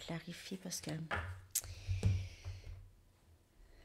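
Cards shuffle and tap in a woman's hands.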